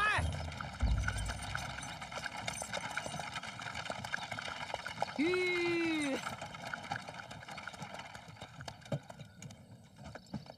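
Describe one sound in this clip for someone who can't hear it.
Wooden cart wheels creak and rattle over the ground.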